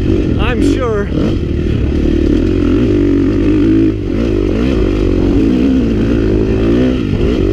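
A dirt bike engine revs and drones loudly up close, rising and falling in pitch.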